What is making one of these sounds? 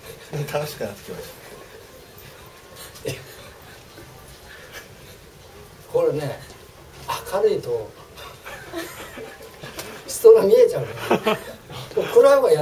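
A middle-aged man talks with animation, close by, laughing at times.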